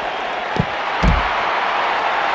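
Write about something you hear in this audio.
A body slams hard onto the floor with a heavy thump.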